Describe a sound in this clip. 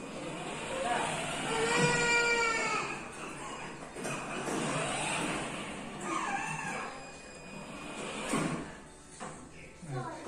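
A toy electric car hums as it rolls across a hard floor.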